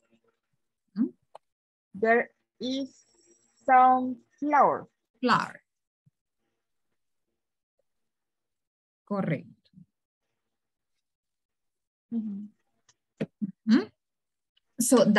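A young woman speaks calmly through an online call, in short phrases.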